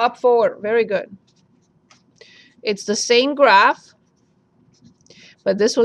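A felt-tip marker scratches softly on paper.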